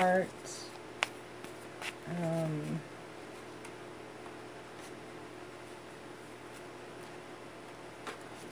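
Playing cards tap and slide softly as they are set down.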